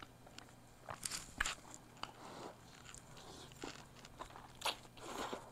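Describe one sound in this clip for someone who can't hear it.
A woman chews and slurps noodles wetly, very close to a microphone.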